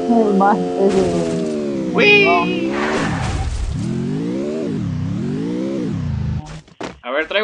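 A car engine revs up and down as the car drives over rough ground.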